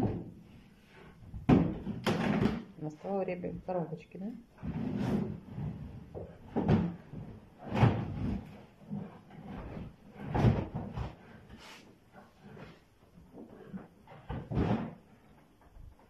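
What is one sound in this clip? A lion sniffs and huffs loudly at close range.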